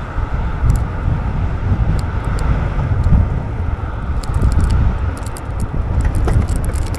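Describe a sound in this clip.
Wind buffets loudly past the microphone while riding outdoors.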